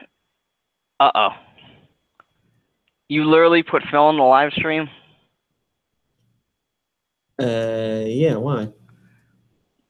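A young man talks animatedly over an online call.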